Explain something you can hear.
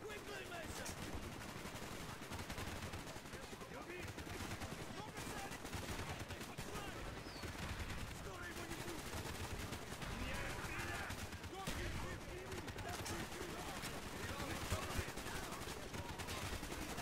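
Rapid rifle fire cracks in bursts.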